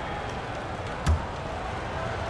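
A basketball bounces once on a hardwood floor.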